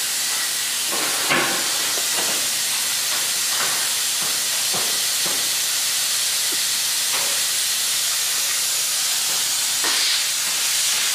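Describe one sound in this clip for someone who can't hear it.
Metal tools clank now and then in a large workshop.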